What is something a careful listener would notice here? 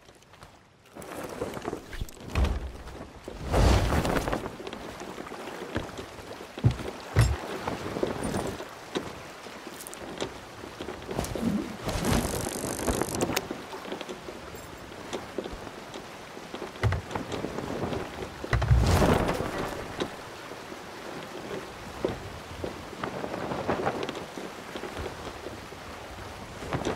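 Waves wash and splash against a wooden ship.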